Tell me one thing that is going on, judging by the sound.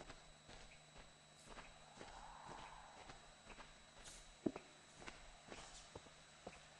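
Footsteps fall at a steady walking pace on a hard floor.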